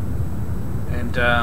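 A man speaks into a headset microphone.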